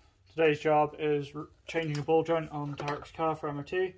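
A plastic wheel cover clicks and rattles as hands pull at it.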